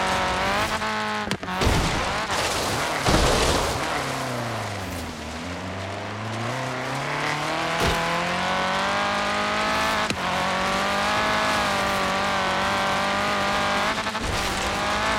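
An engine revs hard, rising and falling in pitch.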